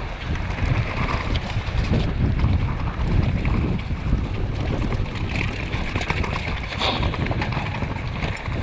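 Bicycle tyres rumble and crunch over a rough dirt and gravel trail.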